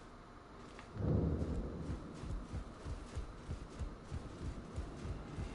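Footsteps thud quickly across wooden boards.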